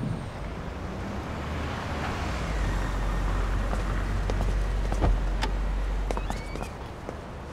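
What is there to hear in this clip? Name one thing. A car engine hums low as a car pulls up and idles.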